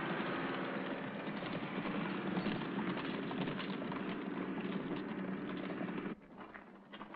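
A truck engine drones steadily as the truck drives over rough ground.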